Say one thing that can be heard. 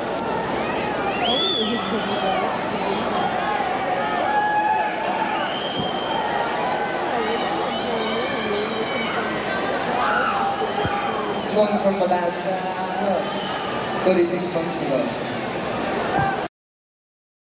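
A large crowd cheers and sings loudly in a big echoing hall.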